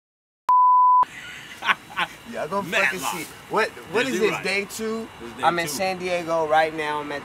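A young man talks casually and animatedly close by.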